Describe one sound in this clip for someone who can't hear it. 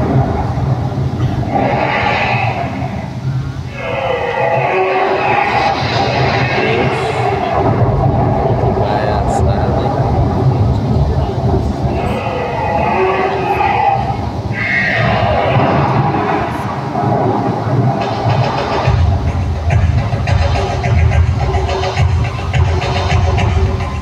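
A crowd of adults chatters outdoors.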